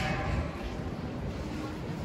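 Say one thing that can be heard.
A hand cart rattles over paving stones.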